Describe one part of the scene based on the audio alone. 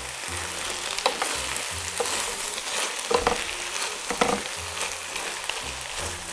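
Wooden spoons scrape and clack against a pan while stirring.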